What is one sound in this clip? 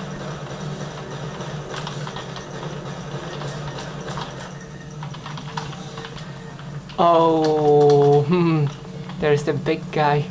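Computer keys click softly under typing fingers.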